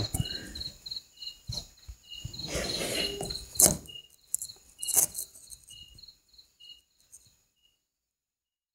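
Doves shuffle and flutter their wings close by.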